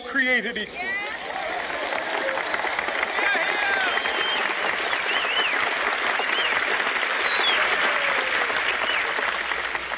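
A huge crowd cheers and applauds.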